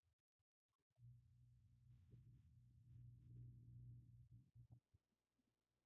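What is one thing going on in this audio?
A blaster fires a buzzing energy shot.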